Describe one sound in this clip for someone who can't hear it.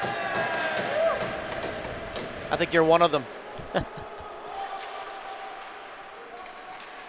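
Skate blades scrape and hiss across the ice.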